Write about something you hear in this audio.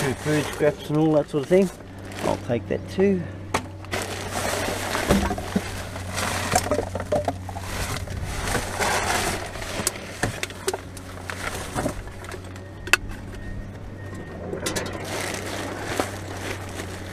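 Paper and plastic rustle and crinkle as gloved hands dig through rubbish.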